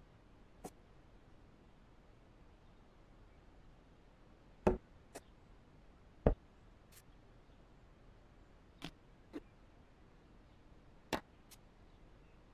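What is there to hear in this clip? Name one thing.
Short soft clicks sound now and then as small objects are set in place.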